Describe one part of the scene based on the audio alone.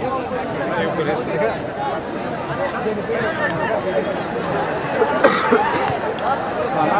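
A large outdoor crowd chatters and calls out steadily.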